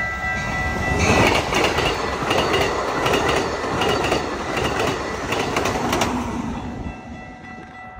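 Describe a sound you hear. A passenger train rushes past close by with a loud rumble and clatter.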